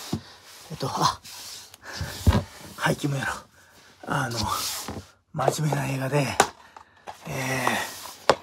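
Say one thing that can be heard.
A middle-aged man talks with animation close to the microphone.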